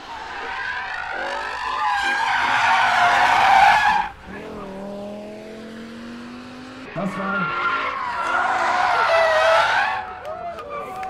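A car engine revs hard, roaring up and down.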